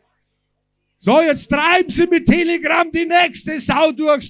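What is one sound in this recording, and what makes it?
A man speaks forcefully into a microphone over loudspeakers.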